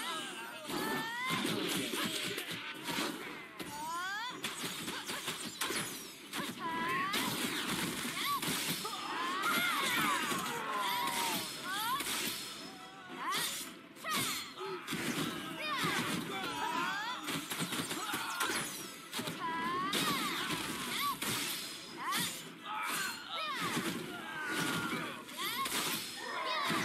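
Swords clash with sharp metallic hits.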